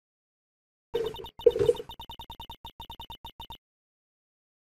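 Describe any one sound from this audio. Short electronic blips tick rapidly in a steady stream.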